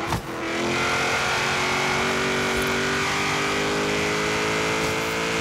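A racing car engine roars at high revs, its pitch rising steadily as it speeds up.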